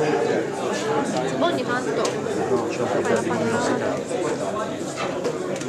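An elderly man speaks to an audience in a room, his voice slightly echoing.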